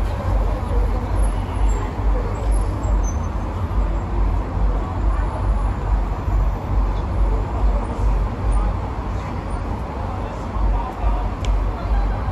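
Young women chat close by.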